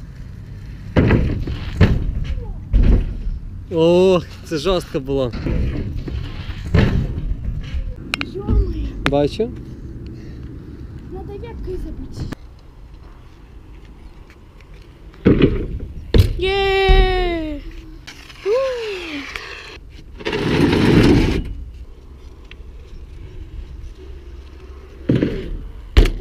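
A bike lands hard with loud thuds.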